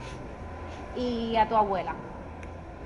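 A young child speaks up close.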